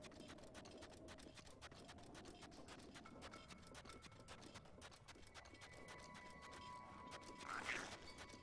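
Footsteps run quickly across soft sand.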